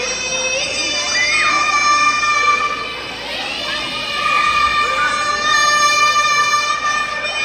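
Young girls sing together in high voices over a loudspeaker.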